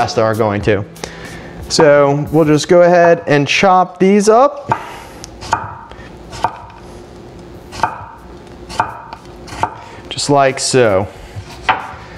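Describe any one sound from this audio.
A knife chops cucumber on a wooden board with quick knocks.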